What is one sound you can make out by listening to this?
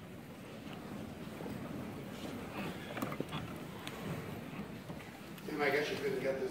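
A crowd murmurs and shuffles.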